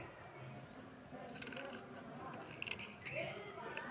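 A blade scrapes along a thin wooden stick.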